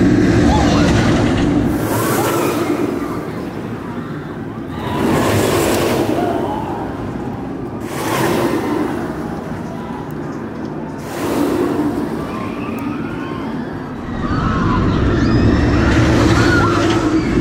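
A roller coaster train rumbles and clatters along its track.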